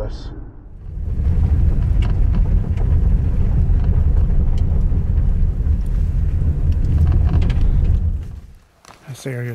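A car engine rumbles loudly as it drives over a rough road.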